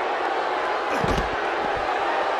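A body slams onto the floor with a heavy thud.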